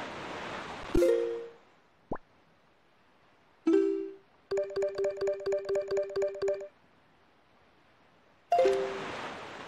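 Bright electronic chimes ring in a quick run.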